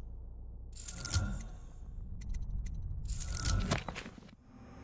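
Menu selections click.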